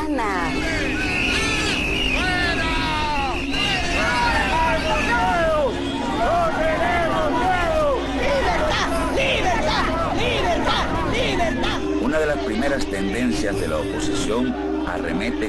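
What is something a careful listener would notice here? A crowd of people chant and shout outdoors.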